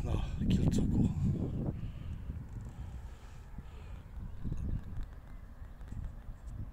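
Wind blows and rumbles across the microphone outdoors.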